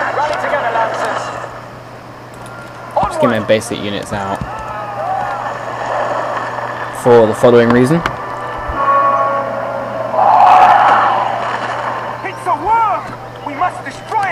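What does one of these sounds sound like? Giant birds let out loud, shrill screeches.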